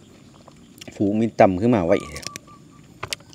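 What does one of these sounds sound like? Crisp vegetable stalks snap as a man breaks them.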